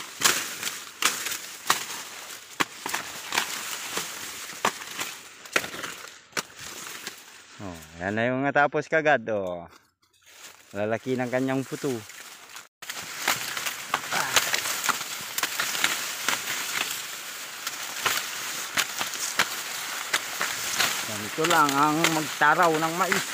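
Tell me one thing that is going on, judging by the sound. Dry corn leaves rustle and brush against each other up close.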